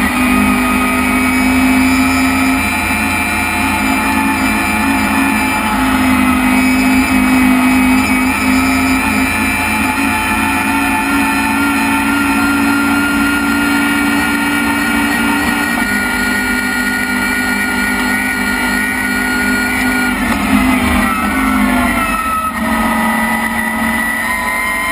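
A rally car engine roars loudly, revving up and down through gear changes.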